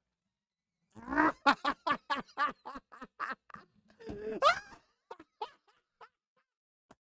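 A man laughs loudly close to a microphone.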